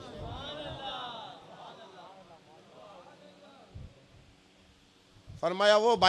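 A man preaches with feeling into a microphone, his voice echoing through loudspeakers.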